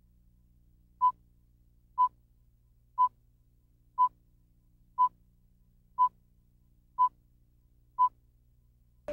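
A countdown beeps once a second.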